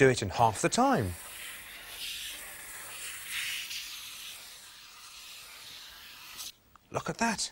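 Chalk pastel scratches and rubs on paper.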